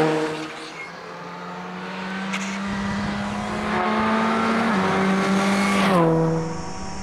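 A rally car approaches at full throttle.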